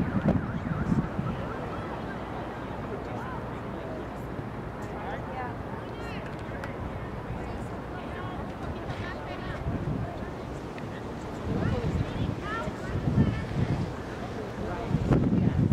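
Young players shout to each other across an open field, heard from a distance.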